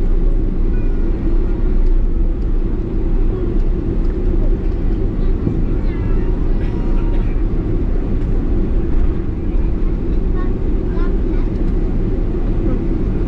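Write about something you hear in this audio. Airplane wheels rumble over a runway.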